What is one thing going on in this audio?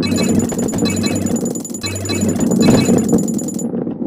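Boxes smash and scatter as a ball crashes through them.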